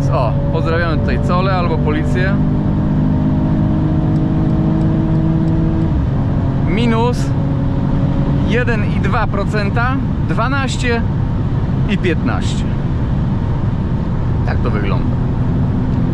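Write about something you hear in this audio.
Wind and tyre noise roar loudly inside a moving car.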